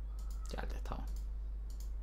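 A soft game interface click sounds as a menu closes.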